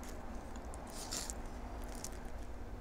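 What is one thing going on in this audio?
A knife slices through a soft-boiled egg onto a plate.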